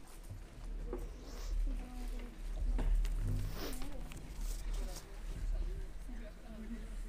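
A young woman speaks calmly through a microphone in a large hall.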